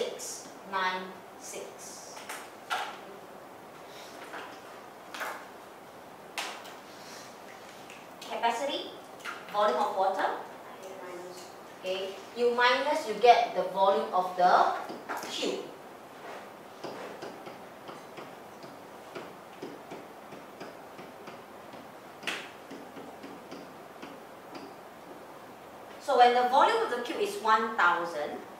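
A woman speaks calmly through a microphone, explaining slowly.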